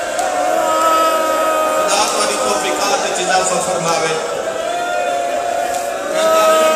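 A crowd of men chants along.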